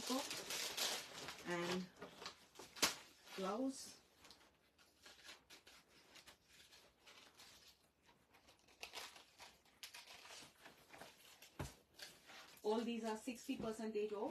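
Fabric rustles as a woman drapes and folds it.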